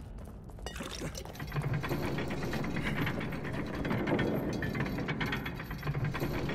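Large metal spikes scrape and clank as they move.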